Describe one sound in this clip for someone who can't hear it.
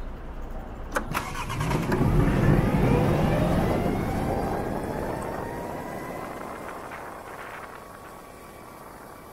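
A motorcycle engine revs hard as the bike pulls away, rising through the gears and then easing off.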